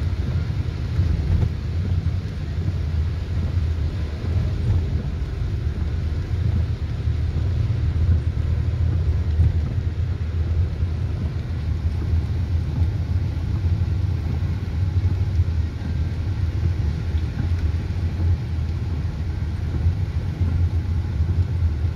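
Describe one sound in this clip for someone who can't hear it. A car engine rumbles steadily.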